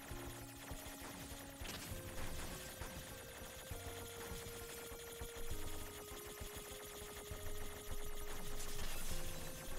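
Electronic music plays with steady, sustained notes and a thumping beat.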